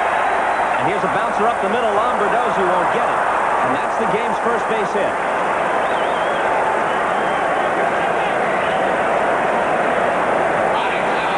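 A large crowd cheers and roars in a big echoing stadium.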